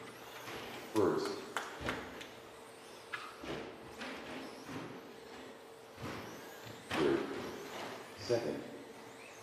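Model cars clatter and bump over the track.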